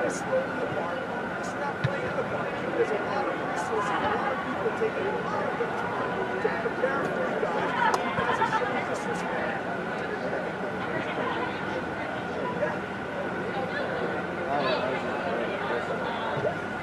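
Distant voices murmur and echo through a large hall.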